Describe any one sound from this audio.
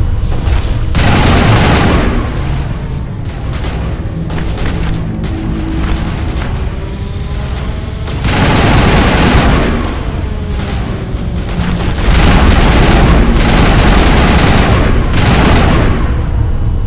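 Rapid gunfire bursts loudly in blasts.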